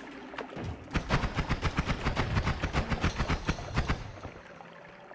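Rapid zapping spell shots crackle in a video game.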